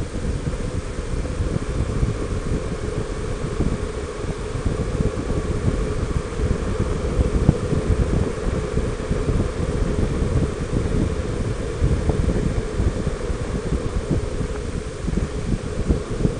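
Wind buffets loudly against a moving vehicle outdoors.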